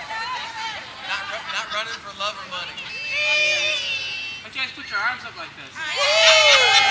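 A large crowd of people chatters and calls out outdoors.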